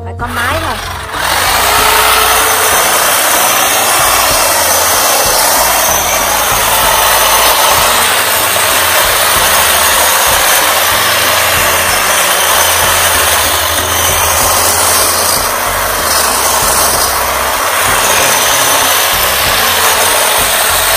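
An electric hedge trimmer buzzes as it cuts through leafy branches.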